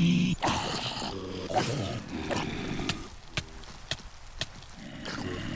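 A sword strikes with quick thuds.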